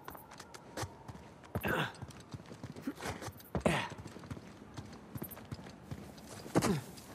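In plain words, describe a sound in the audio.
Footsteps run over stony ground.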